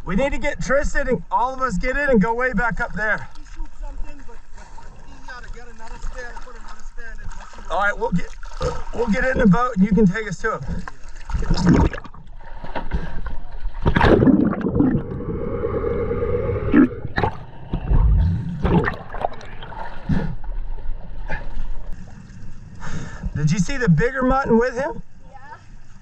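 A man talks loudly from a short distance across open water.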